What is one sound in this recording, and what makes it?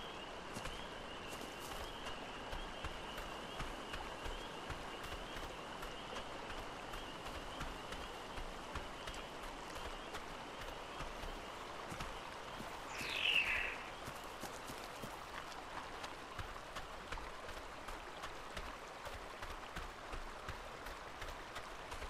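Footsteps run quickly over wet sand and shallow water.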